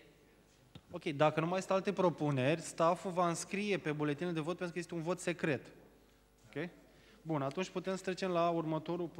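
A man talks loudly through a microphone in an echoing hall.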